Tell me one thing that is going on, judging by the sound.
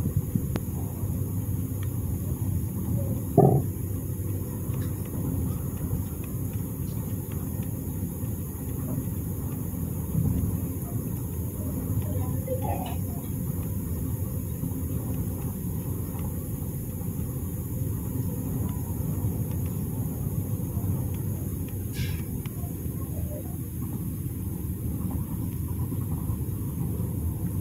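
Water trickles and gurgles steadily nearby.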